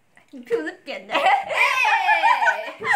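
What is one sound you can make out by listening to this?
Young women laugh loudly close by.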